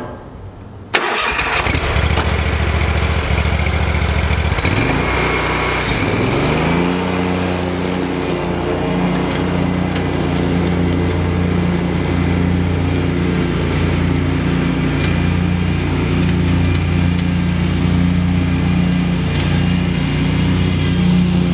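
A mower engine starts up and runs with a loud, steady drone.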